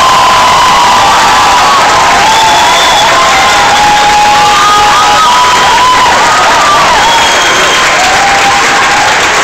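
A crowd whistles loudly.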